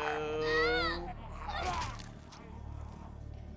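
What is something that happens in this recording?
A zombie snarls and growls.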